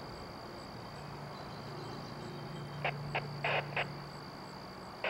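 A train engine rumbles faintly as it approaches.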